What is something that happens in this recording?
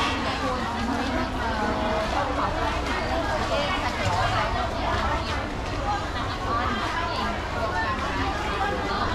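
A crowd of men and women chatter all around in a busy echoing hall.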